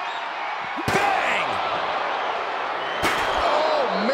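A metal folding chair slams hard against a body.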